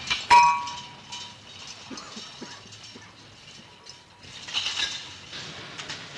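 A shopping cart rattles over pavement.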